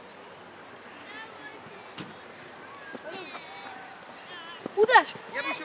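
Young children shout excitedly outdoors.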